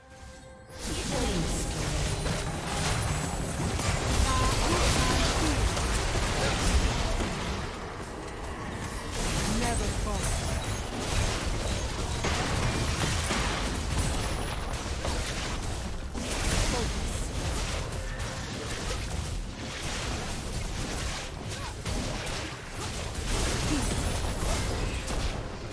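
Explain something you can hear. Game spell effects and weapon hits crackle and clash in quick bursts.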